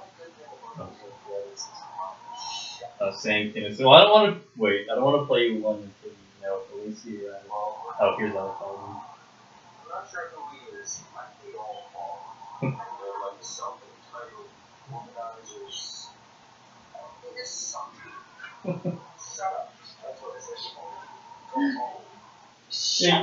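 Paper rustles and crinkles close by as it is handled.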